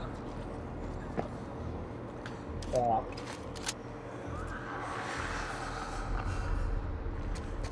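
Footsteps shuffle softly on a gritty floor.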